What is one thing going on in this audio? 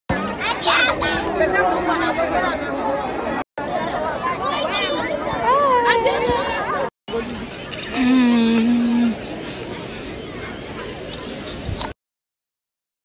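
Young women talk and laugh close by, outdoors.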